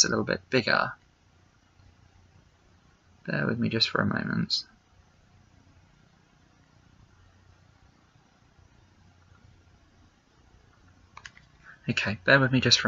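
A young man speaks calmly and close by, in short bursts with pauses.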